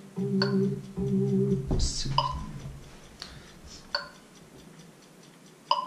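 An electronic keyboard plays short chords and high notes that ring out and fade.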